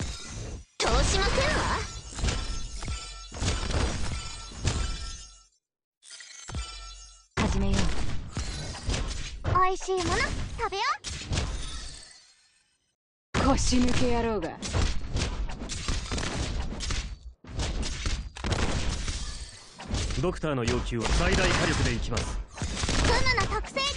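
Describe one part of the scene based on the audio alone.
Weapons clash and strike repeatedly in a game battle.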